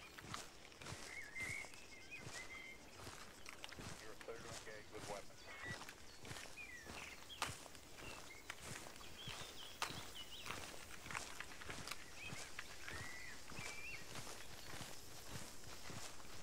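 Footsteps crunch on dry ground and brush through low plants.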